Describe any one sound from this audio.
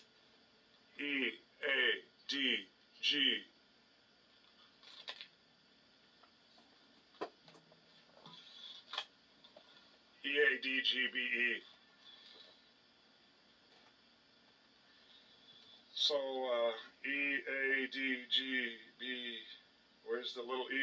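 A man speaks calmly, explaining, close by.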